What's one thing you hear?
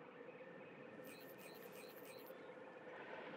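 Soft clicks tick in quick succession.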